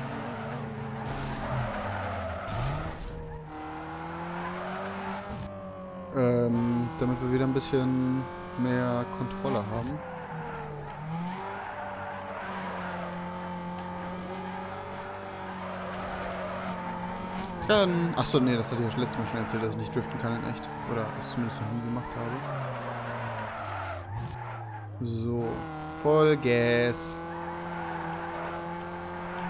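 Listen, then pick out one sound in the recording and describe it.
A car engine revs and drones steadily.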